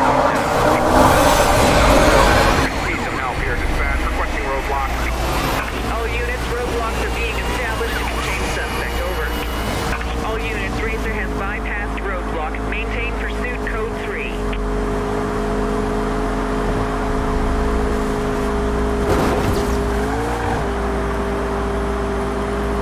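A sports car engine roars at high speed.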